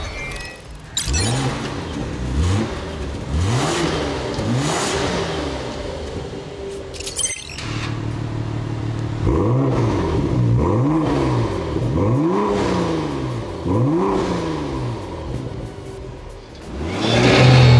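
A car engine revs hard again and again in an enclosed room.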